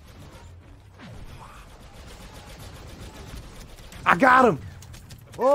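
Laser blasters fire in quick zapping bursts.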